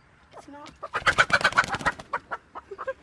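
A chicken flaps its wings noisily.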